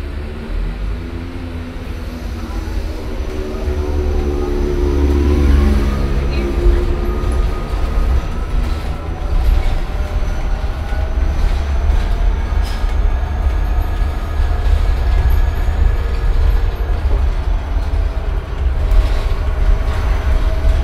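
A bus engine rumbles steadily inside the cabin.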